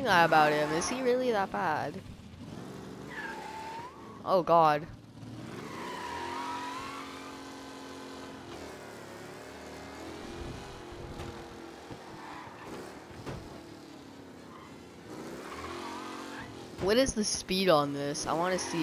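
A racing car engine hums steadily as the car drives along.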